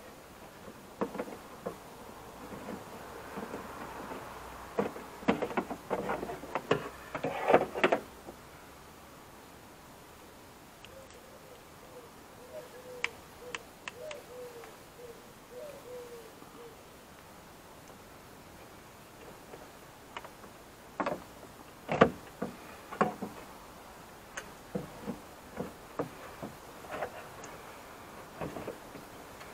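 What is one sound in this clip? Plastic parts click and knock against a car door's metal panel.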